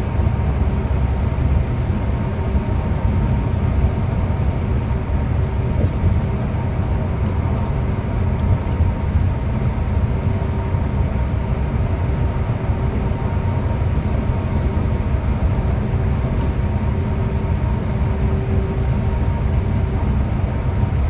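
Tyres roar on the road, echoing in a tunnel.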